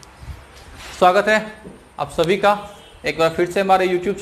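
A young man speaks clearly and calmly into a nearby microphone.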